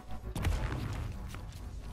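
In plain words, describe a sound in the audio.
A ball is struck with a hard thud.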